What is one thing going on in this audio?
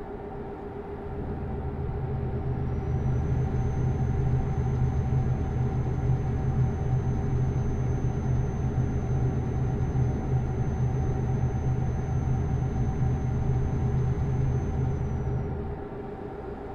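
Tyres rumble on a snowy road.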